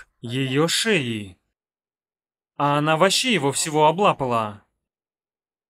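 A woman speaks with animation close to a microphone.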